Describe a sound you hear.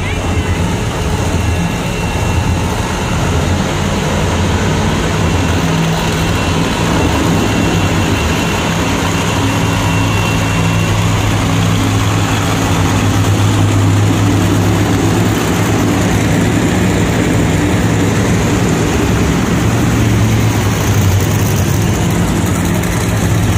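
Monster truck engines rumble and roar loudly in a large echoing arena.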